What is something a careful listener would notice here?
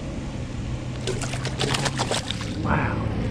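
Water splashes as a fish is dropped back in.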